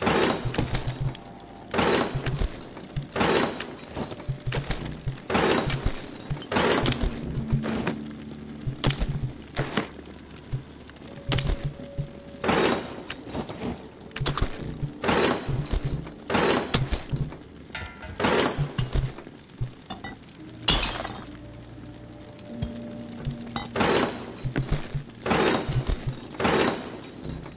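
Short sharp clanks and clicks ring out again and again as parts are crafted.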